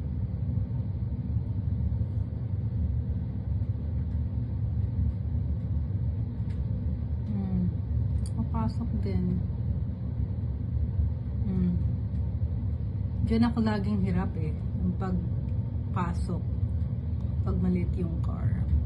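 A car engine hums low as a car struggles through deep snow.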